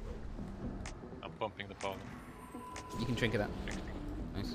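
Game spell effects chime and whoosh.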